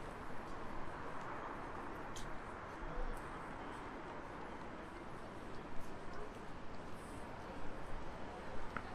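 City traffic rumbles steadily nearby, outdoors.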